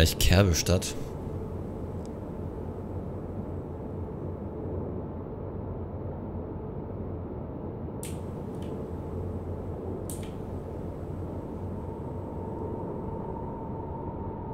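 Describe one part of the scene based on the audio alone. A train engine hums steadily as the train rolls along.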